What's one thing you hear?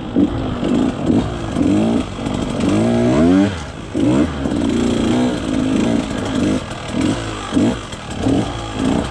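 Tyres crunch over dirt and rocks.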